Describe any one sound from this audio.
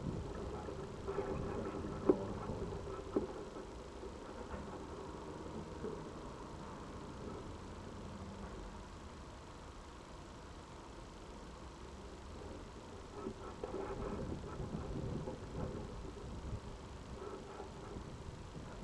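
Bees buzz steadily and close by.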